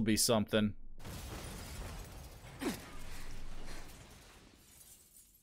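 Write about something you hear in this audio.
Swords clash and ring out.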